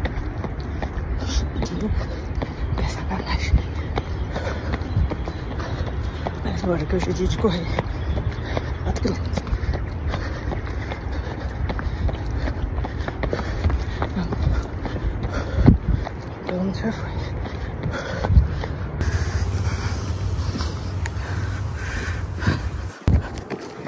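Footsteps patter on a paved path.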